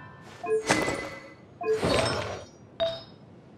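A magical shimmer swells and fades.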